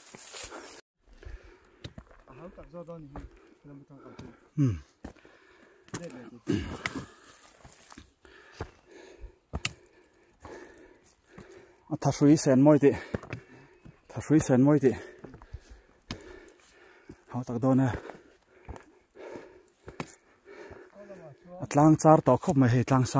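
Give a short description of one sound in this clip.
Footsteps crunch on dry soil and loose stones.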